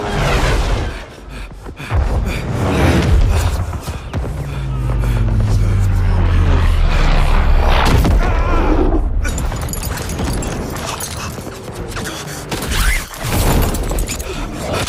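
Aircraft engines drone loudly overhead.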